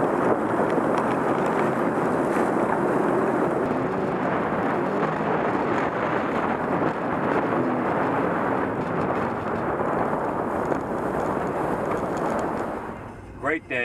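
A jet ski engine roars.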